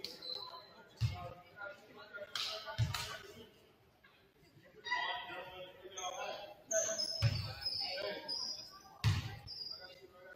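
A basketball bounces on a wooden court with dull thuds.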